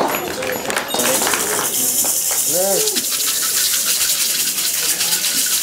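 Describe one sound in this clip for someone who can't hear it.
Hand rattles shake in a steady, hissing rhythm.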